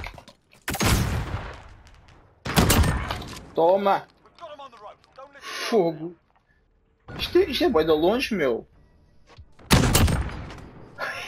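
A shotgun fires loud single blasts.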